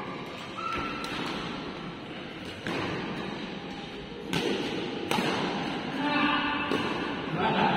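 Badminton rackets hit a shuttlecock in an echoing hall.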